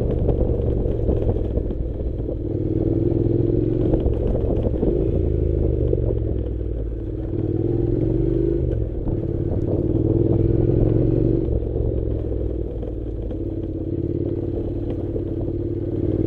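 A motorcycle engine rumbles close by, its pitch rising and falling with the throttle.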